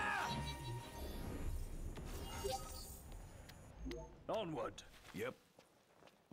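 Sword blows and impacts clash loudly.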